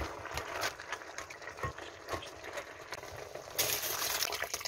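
A wooden spatula stirs and knocks against a plastic bowl.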